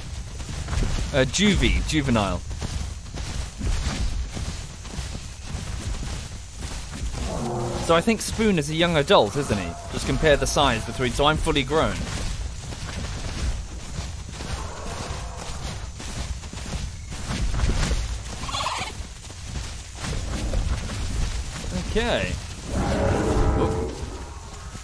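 Large creatures growl and call out.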